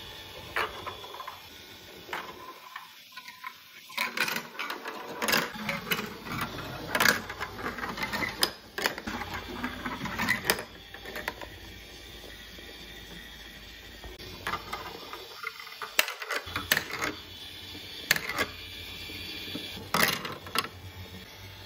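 Plastic marbles roll and clatter down plastic tracks.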